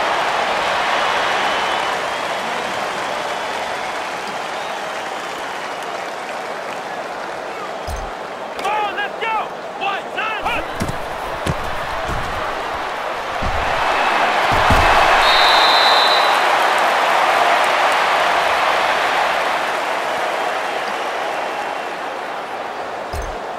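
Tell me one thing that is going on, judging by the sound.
A stadium crowd roars steadily, swelling louder for a while.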